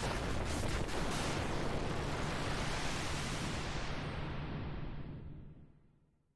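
A huge magical blast roars loudly and slowly fades away.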